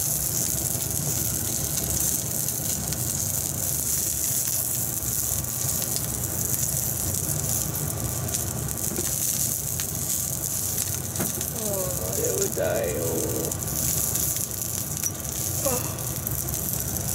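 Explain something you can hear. Wooden chopsticks tap against a pan.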